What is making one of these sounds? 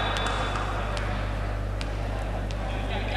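A volleyball bounces on an indoor court floor.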